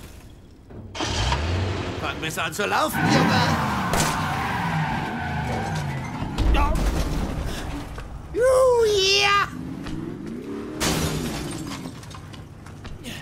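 A car engine starts and revs loudly.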